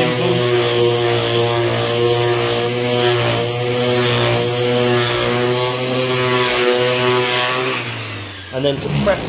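An electric sander buzzes steadily as it grinds a surface.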